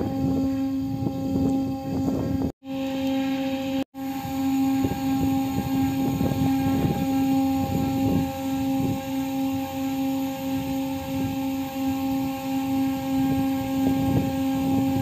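Heavy steel hatch covers creak and clank as they slowly fold.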